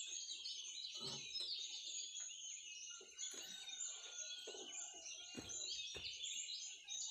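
Footsteps thump and clank on a metal machine.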